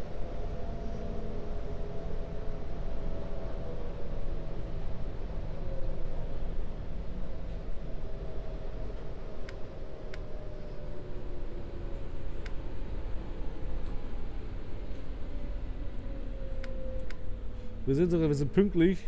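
A train rumbles along rails.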